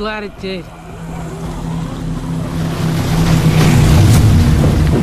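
Boat engines rumble and idle.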